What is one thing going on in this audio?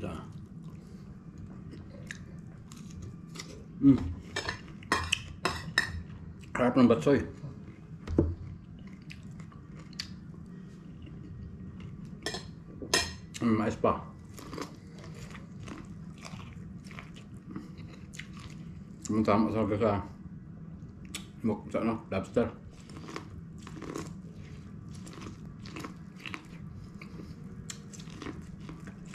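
A man chews food loudly and smacks his lips close to the microphone.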